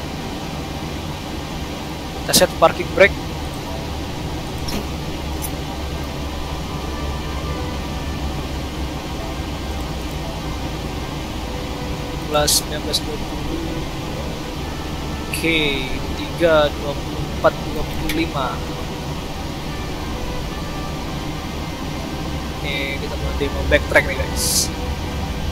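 Jet engines hum low and steady.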